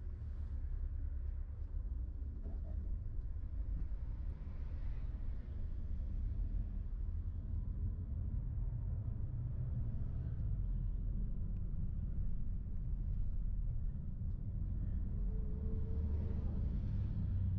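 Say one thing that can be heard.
A car engine hums low and steady from inside the vehicle.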